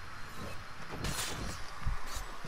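A sharp blow lands with a thud.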